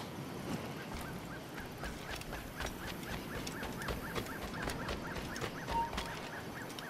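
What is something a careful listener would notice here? Quick footsteps run over dirt and grass.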